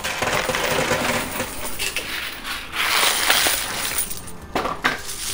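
Coins clink and jingle as they shift and drop.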